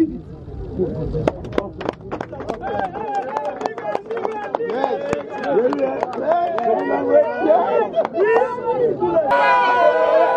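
Men clap their hands in rhythm.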